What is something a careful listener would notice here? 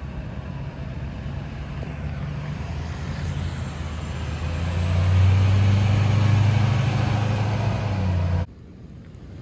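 A vehicle engine rumbles as it drives past up close.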